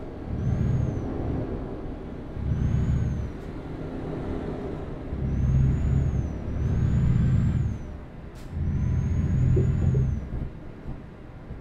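A heavy truck engine rumbles low and surges in waves.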